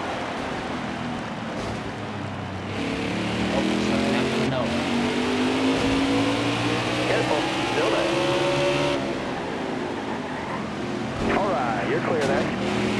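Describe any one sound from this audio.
Racing car engines drone and whine steadily, rising in pitch as they speed up.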